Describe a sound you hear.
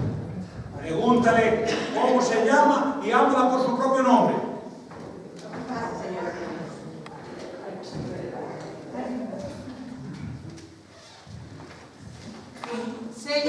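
A woman speaks loudly and with animation on a stage, in an echoing hall.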